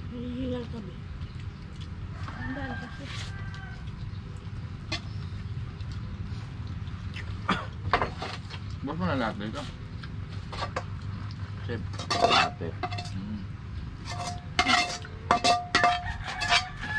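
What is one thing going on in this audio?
Utensils clink against plates.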